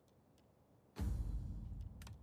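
A soft interface click sounds as a game menu opens.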